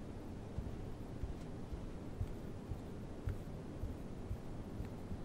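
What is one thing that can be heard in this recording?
Footsteps thud on a wooden floor at a steady walking pace.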